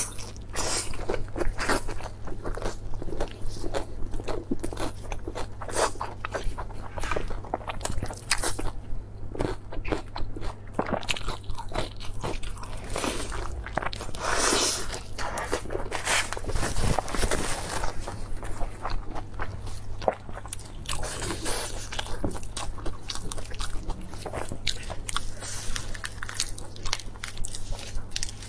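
A young woman chews and smacks her lips loudly close to a microphone.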